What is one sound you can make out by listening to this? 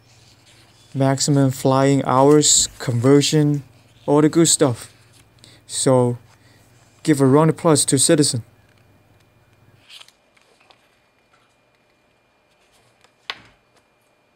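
Paper pages rustle and flip as a booklet is leafed through.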